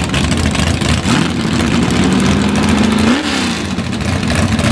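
A car's engine revs up and drops back.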